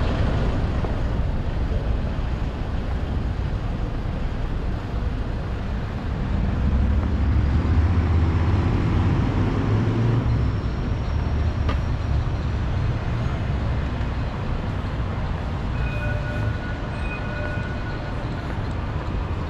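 Footsteps tap on the pavement.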